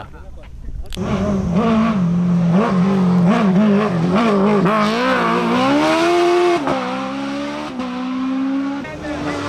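A racing car engine roars loudly as the car accelerates past.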